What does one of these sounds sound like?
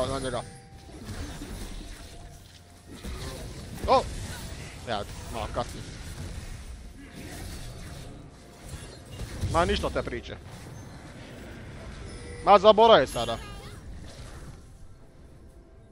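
Video game spell effects whoosh and crackle.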